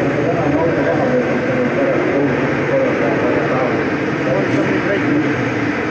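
A car engine revs in the distance.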